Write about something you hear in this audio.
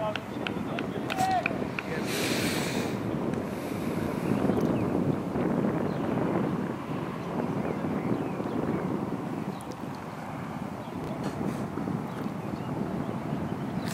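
Young players shout to each other across an open outdoor pitch.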